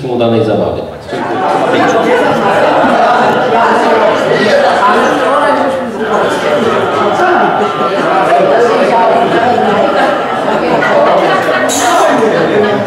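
A crowd of men and women chatters at tables.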